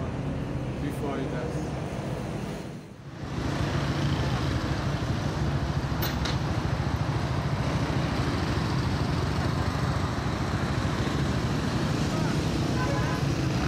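Traffic hums along a city street.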